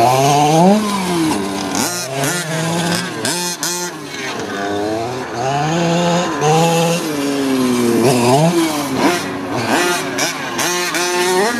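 A small remote-control car's motor whines loudly, revving up and down.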